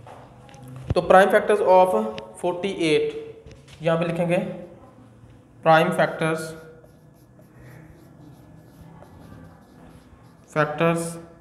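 A man speaks calmly and clearly, close by, as if teaching.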